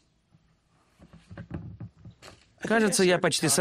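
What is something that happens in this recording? A man packs gear into a kayak with soft knocks and rustling.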